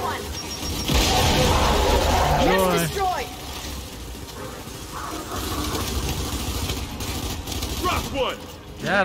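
Rifle gunfire rattles in rapid bursts.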